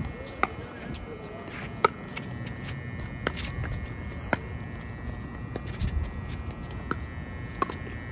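Sneakers shuffle and squeak on a hard court.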